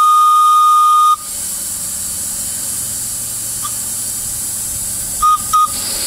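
A model steam locomotive's electronic whistle sounds in long and short toots.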